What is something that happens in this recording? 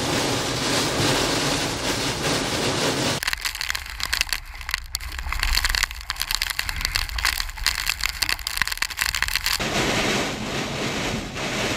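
Heavy rain pounds steadily on a car's windshield.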